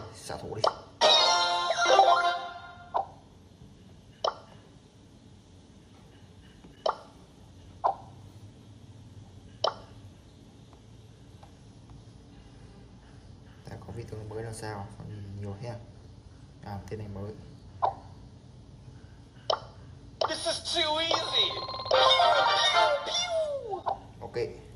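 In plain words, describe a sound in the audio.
A bright electronic jingle plays from a tablet game.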